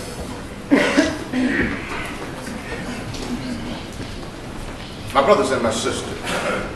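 A middle-aged man speaks with emphasis into a microphone in a room with some echo.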